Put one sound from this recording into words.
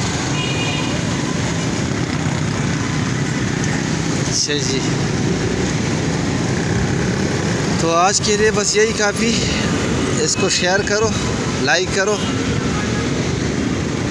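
Motorcycle engines rumble steadily in busy street traffic.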